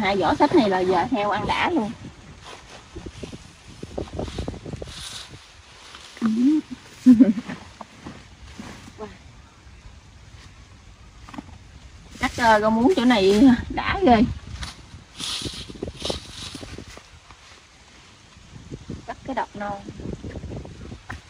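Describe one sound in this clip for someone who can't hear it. Leafy stems rustle as they are handled and pulled.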